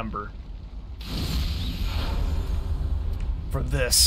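A fiery whoosh swells and roars.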